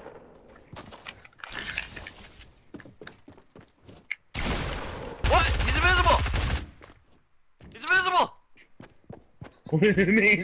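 Video game building pieces snap into place with hollow knocks.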